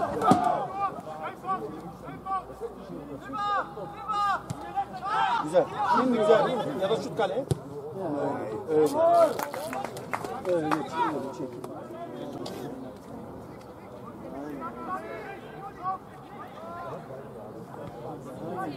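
Young men shout and call out to each other across an open pitch.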